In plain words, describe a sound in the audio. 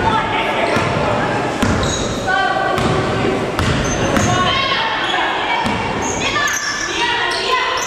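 Players and spectators shout and chatter in a large hall.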